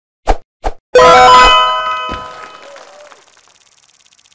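A bright victory jingle plays and rings out.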